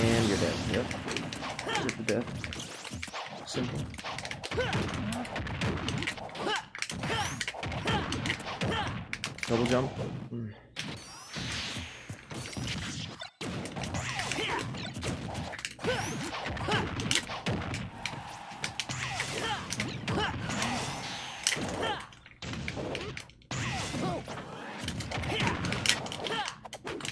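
Fighters in a video game clash with sharp punches, blasts and impacts.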